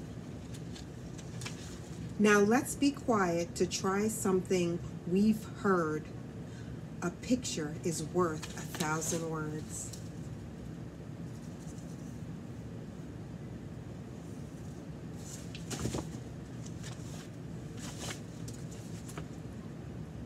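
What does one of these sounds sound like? Paper pages rustle as a book is handled.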